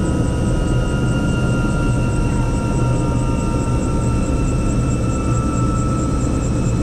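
Helicopter rotor blades thump rapidly and evenly.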